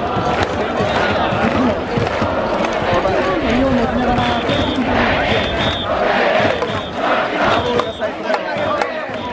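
Spectators clap and bang noisemakers in rhythm.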